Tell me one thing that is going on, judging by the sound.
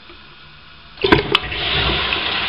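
A toilet flush button clicks as it is pressed.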